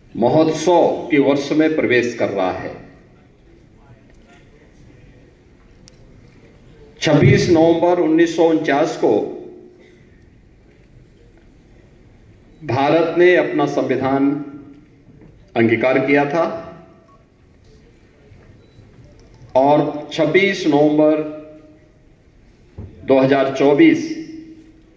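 A middle-aged man speaks slowly and forcefully into a microphone, with long pauses, in a large echoing hall.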